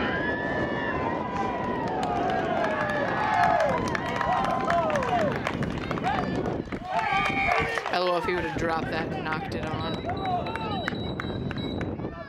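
A crowd of spectators cheers and shouts loudly outdoors.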